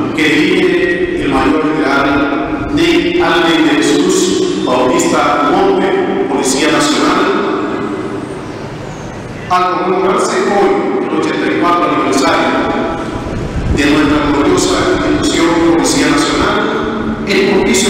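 A man speaks with feeling into a microphone, heard through loudspeakers in an echoing hall.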